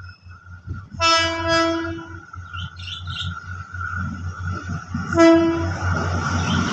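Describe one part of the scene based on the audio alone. A train horn sounds two long blasts.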